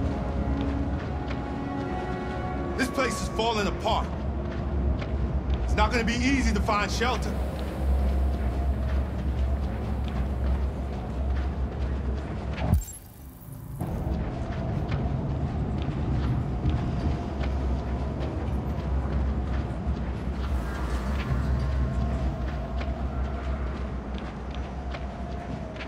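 Footsteps crunch over snow at a steady walking pace.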